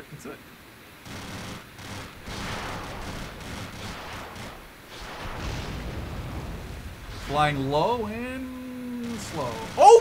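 Jet engines roar steadily overhead.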